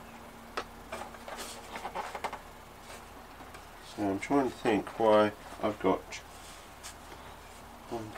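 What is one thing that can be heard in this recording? Plastic rustles and crinkles as a man handles a foam model plane.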